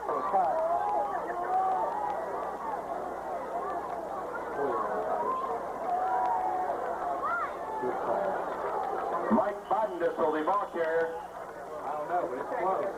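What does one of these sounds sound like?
A crowd of spectators chatters and calls out nearby.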